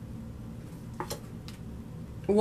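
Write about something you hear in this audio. A hand moves cards across a table.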